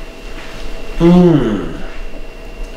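A middle-aged man hums with pleasure.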